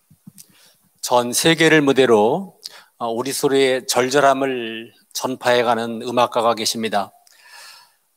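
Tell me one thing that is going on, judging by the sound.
An elderly man speaks calmly through a microphone in a large echoing hall.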